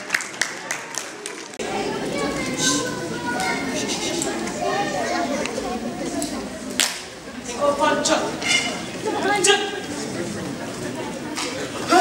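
Many children chatter loudly in a large echoing hall.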